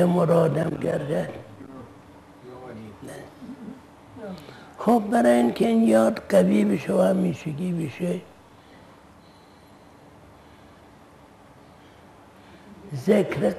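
An elderly man speaks calmly and slowly into a close microphone.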